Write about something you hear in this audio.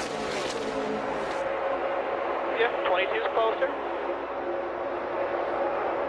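Many race car engines roar loudly as a pack speeds past.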